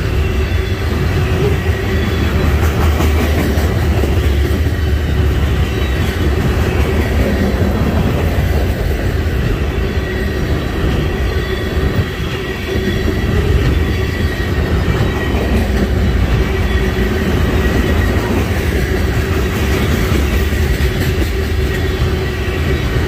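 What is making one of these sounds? Wheels squeal faintly against the rails.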